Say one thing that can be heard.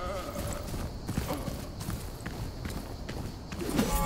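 Footsteps crunch quickly over dirt.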